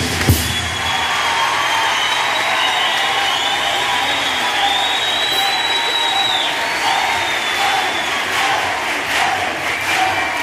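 A choir of young girls sings together loudly.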